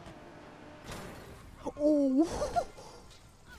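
A car crashes with a loud bang.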